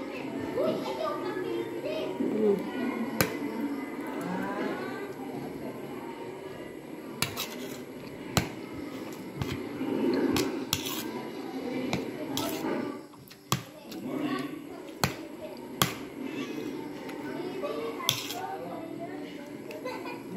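A woman chews and smacks her lips.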